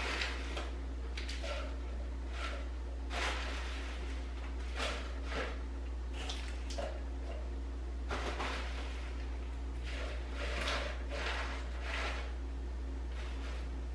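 Leafy greens rustle as they are stuffed into a blender jar.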